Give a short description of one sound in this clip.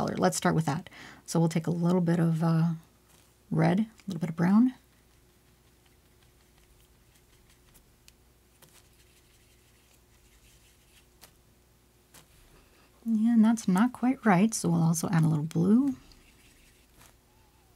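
A paintbrush dabs and swishes softly through wet paint.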